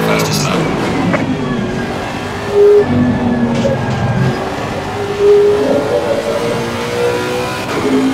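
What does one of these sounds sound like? A racing car engine roars at high revs and shifts through gears.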